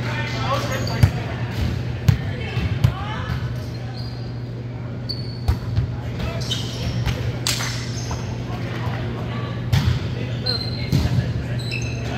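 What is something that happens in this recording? A volleyball thumps off hands.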